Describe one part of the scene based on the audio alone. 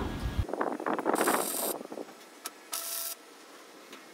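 An arc welder crackles and hisses against metal.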